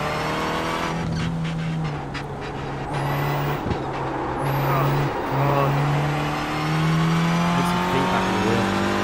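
A race car engine roars and shifts through gears.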